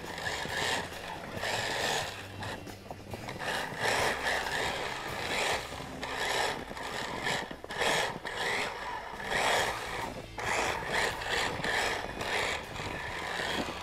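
Footsteps crunch in snow close by.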